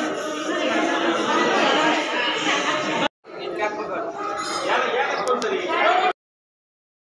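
A crowd of men and women talks loudly nearby.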